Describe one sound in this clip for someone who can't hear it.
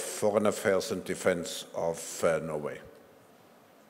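An elderly man speaks calmly through a microphone in a large hall.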